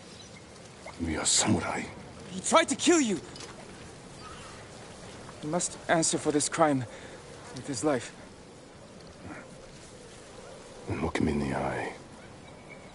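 A man speaks firmly and calmly, close by.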